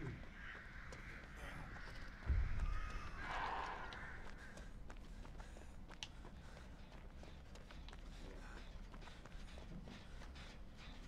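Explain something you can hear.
Footsteps run quickly through rustling grass.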